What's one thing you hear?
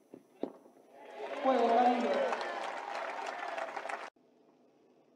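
A crowd cheers and applauds outdoors.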